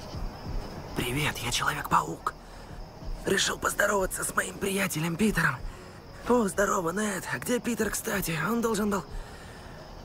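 A young man speaks quietly and close by.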